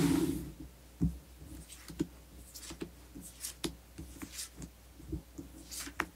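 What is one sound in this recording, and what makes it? Cards slide and tap softly on a cloth as they are spread out.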